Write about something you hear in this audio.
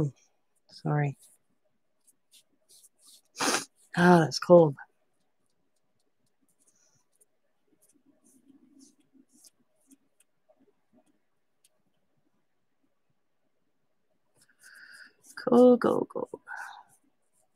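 A paintbrush scrapes softly across textured paper.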